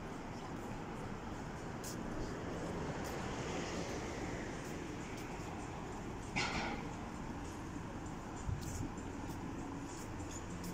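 Street noise hums steadily outdoors.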